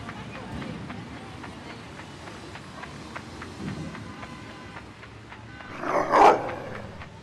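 A dog's paws patter quickly and steadily on hard ground.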